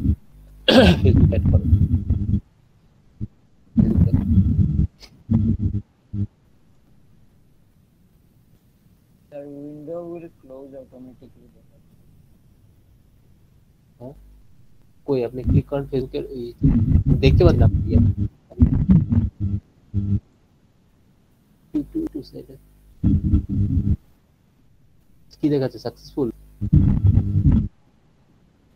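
A young man speaks calmly through an online call.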